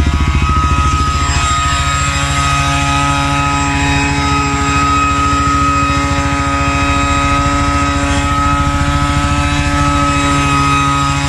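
An electric leaf blower whines steadily close by.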